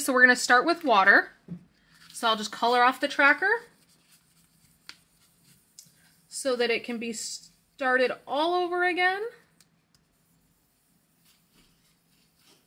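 A sticker peels off its backing sheet with a soft crackle.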